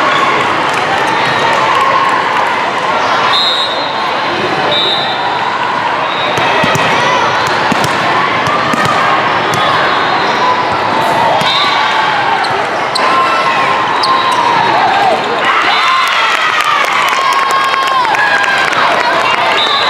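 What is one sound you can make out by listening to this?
A crowd of girls and spectators cheers and chatters in a large echoing hall.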